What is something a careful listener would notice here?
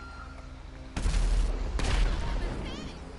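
A truck crashes into another vehicle with a loud thud.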